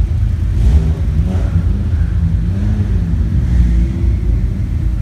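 A sports car engine revs up and settles.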